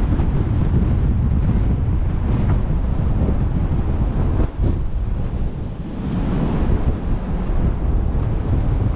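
Waves wash and splash against a ship's hull.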